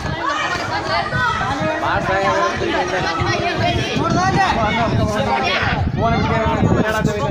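Young men shout and chant excitedly outdoors.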